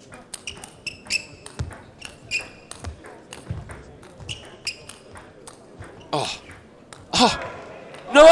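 A table tennis ball clicks rapidly back and forth off paddles and a table.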